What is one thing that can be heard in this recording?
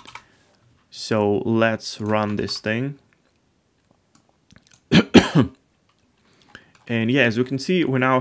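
A man speaks calmly and closely into a microphone, in short phrases.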